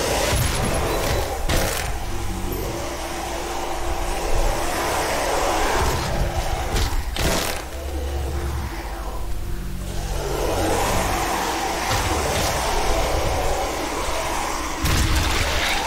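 Heavy thuds and crunches ring out as creatures are struck.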